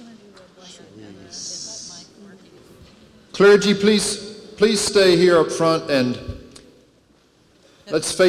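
A crowd murmurs and chatters softly in a large hall.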